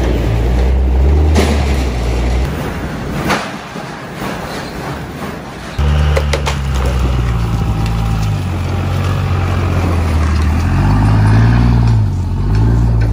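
A diesel truck engine roars loudly while revving.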